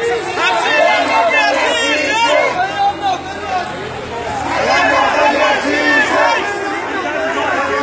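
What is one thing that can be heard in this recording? A crowd of men and women chant and shout loudly outdoors.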